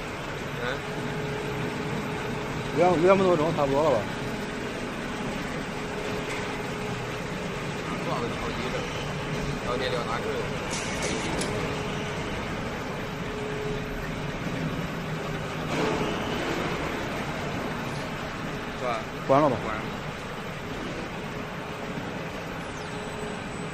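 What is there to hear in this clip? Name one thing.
An electric motor hums steadily.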